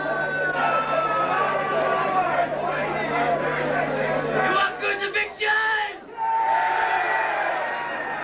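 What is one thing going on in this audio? A man shouts into a microphone through loudspeakers.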